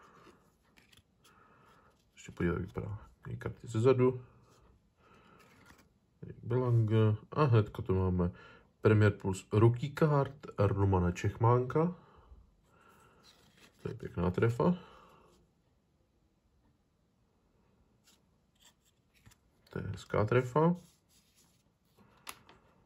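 Stiff trading cards rustle softly as they are shuffled by hand.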